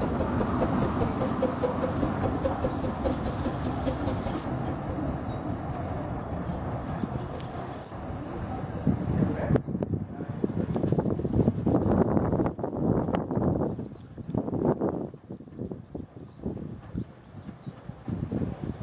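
A small steam engine chuffs as it moves slowly along.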